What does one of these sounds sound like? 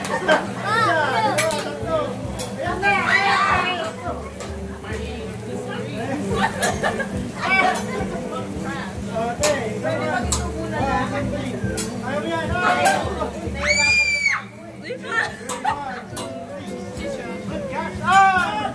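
Metal utensils clack against a hot griddle.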